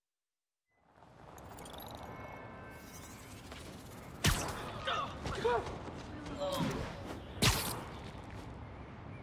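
Web lines shoot and swing with whooshing sounds in a video game.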